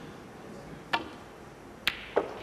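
Snooker balls knock against each other.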